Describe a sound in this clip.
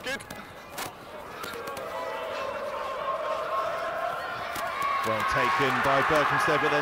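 A crowd cheers and roars, growing louder.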